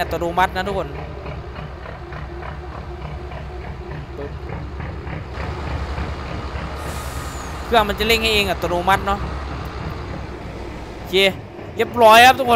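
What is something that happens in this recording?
A heavy diesel engine rumbles steadily.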